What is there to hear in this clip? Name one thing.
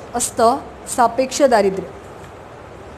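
A young woman speaks briefly and clearly.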